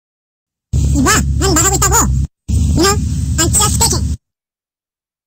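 A man speaks loudly and with animation, close to a microphone.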